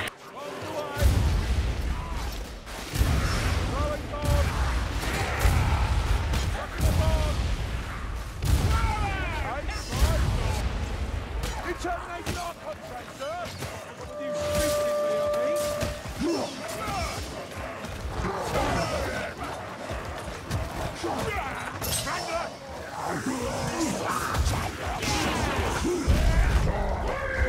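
Heavy weapon blows thud and clang against bodies.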